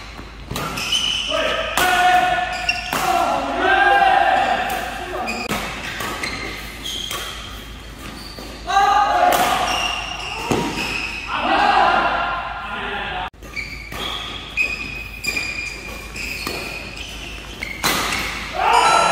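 Rackets smack a shuttlecock back and forth in quick rallies.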